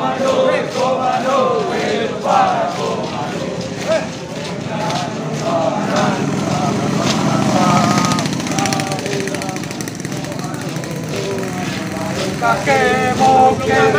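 A column of soldiers marches in step, boots tramping on an asphalt road outdoors.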